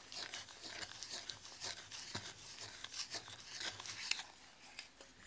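A wooden spoon stirs and swishes through melted butter in a pan.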